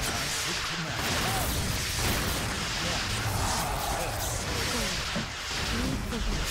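Swords clash and clang in a busy battle.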